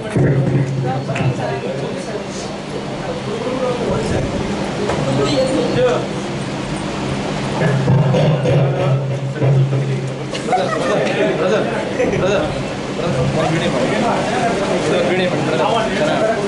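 Men and women chatter and talk over each other nearby.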